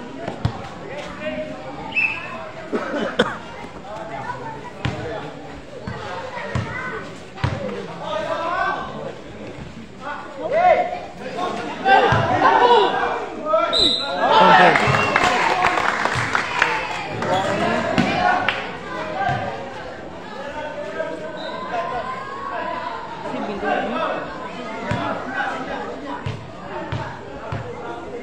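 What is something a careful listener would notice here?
A crowd of spectators shouts and cheers.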